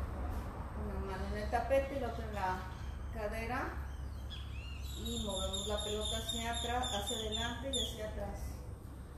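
A woman speaks calmly nearby.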